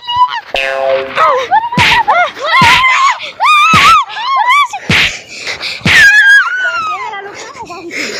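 Women scream and shout in high, frantic voices close by.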